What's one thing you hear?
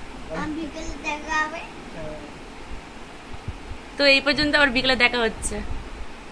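A young girl speaks cheerfully close by.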